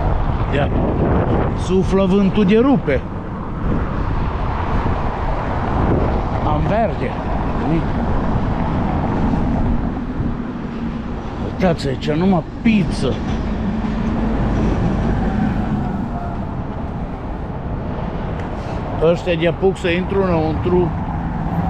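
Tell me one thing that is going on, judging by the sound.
Wind rushes and buffets steadily while riding outdoors.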